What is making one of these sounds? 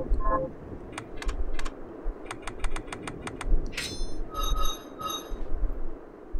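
Menu selections click and beep in quick succession.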